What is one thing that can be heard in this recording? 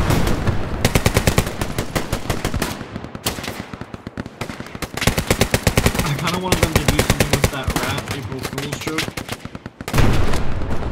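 A machine gun fires rapid bursts close by.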